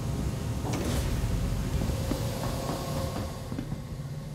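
A heavy metal door slides open with a loud hiss.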